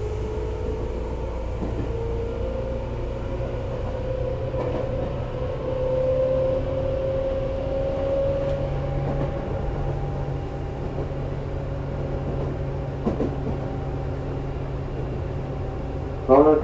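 An electric train approaches with a low steady rumble and a whining motor.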